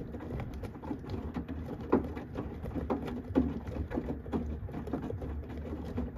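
Wet laundry sloshes and thumps inside a washing machine drum.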